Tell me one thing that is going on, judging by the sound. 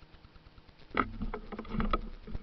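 Something brushes and knocks against the recorder up close.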